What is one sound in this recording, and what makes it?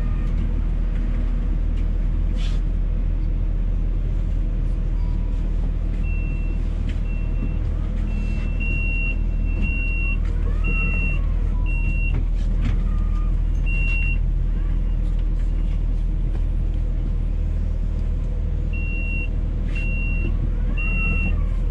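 Cars drive past on a nearby road.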